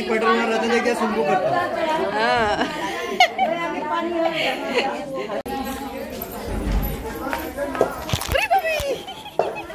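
A group of women sing together nearby.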